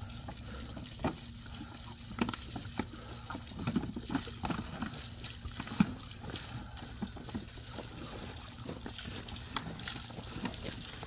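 A small engine idles roughly and sputters.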